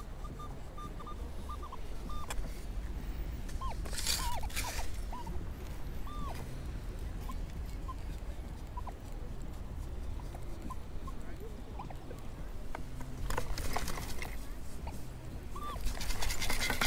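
A metal detector beeps in short chirps.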